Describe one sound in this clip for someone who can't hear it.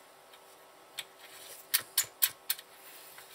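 A plug clicks and scrapes into a socket.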